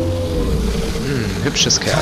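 A monstrous creature roars loudly.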